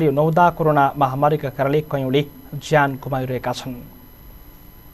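A man speaks loudly and clearly outdoors.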